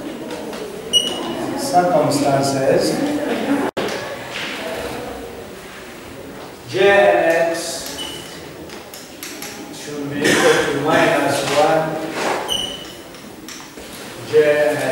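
A man lectures in a moderately echoing room.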